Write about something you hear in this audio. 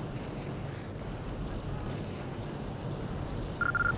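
Flames crackle in the distance.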